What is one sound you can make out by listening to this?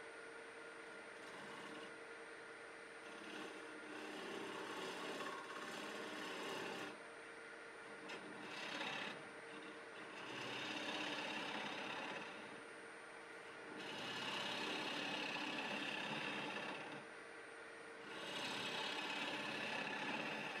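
A gouge scrapes and shaves spinning wood in bursts.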